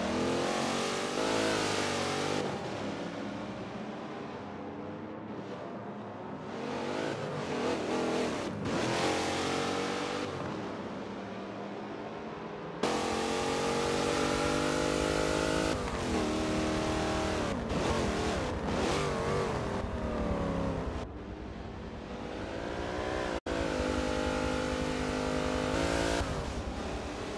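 A truck engine roars, revving up and down as gears change.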